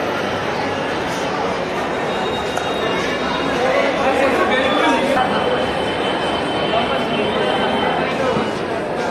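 A crowd of young men and women chatters all around.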